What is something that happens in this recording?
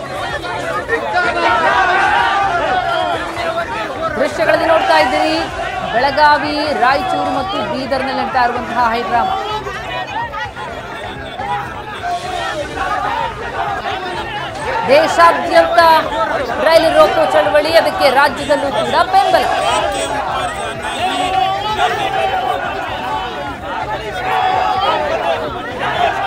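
A crowd of men shout and argue loudly outdoors.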